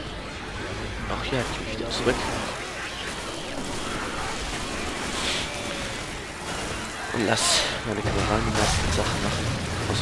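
Zombies growl and snarl.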